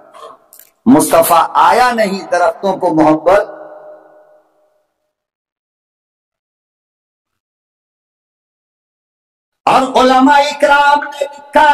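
An elderly man preaches forcefully into a microphone, heard through loudspeakers with echo.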